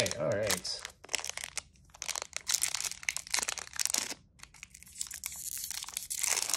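Playing cards riffle and flick close by.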